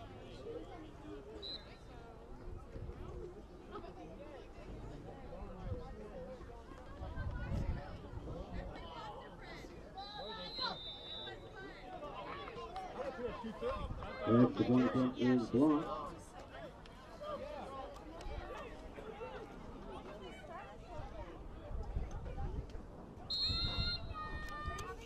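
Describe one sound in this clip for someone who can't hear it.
Boys and men chatter and call out to each other outdoors.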